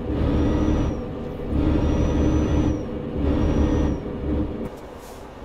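A heavy diesel truck engine drones as it cruises, heard from inside the cab.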